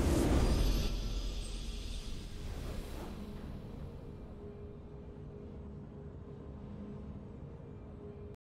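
A soft, triumphant tune plays and fades.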